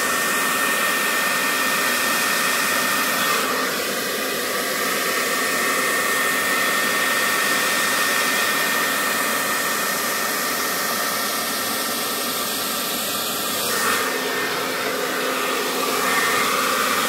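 A hair dryer blows with a steady loud whirring roar close by.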